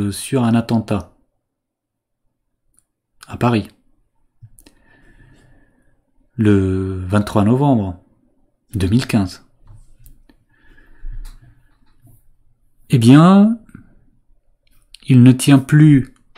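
A man speaks close into a microphone in short, hesitant bursts with pauses.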